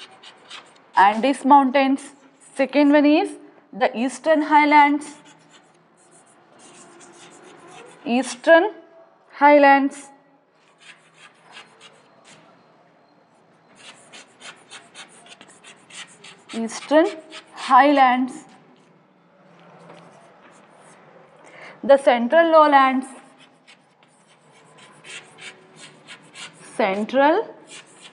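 A woman speaks calmly in short phrases, as if teaching.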